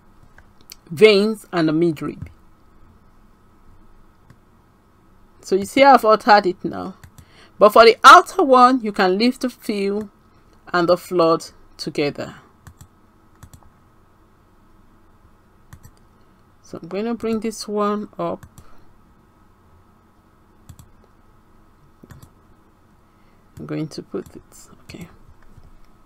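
A woman talks calmly into a close microphone, pausing between phrases.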